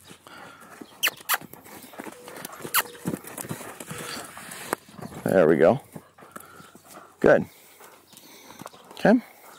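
Hooves thud softly on sand.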